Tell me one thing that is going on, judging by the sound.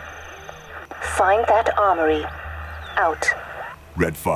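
A man speaks over a radio, heard through a speaker.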